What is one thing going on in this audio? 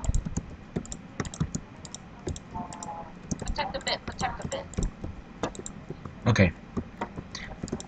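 Blocks click into place in quick succession.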